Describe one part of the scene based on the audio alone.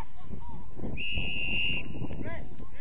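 A referee's whistle blows a short steady blast.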